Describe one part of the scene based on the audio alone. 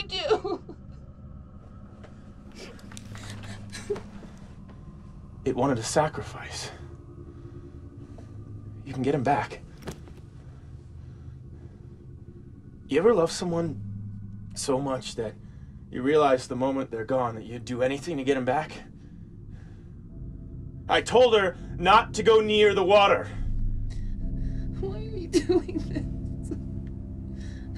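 A young woman moans and whimpers in distress, close by.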